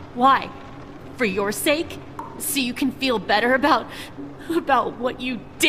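A woman answers bitterly.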